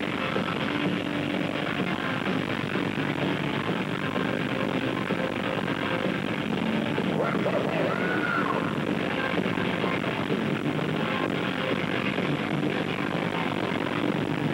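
A rock band plays loudly through a large concert sound system.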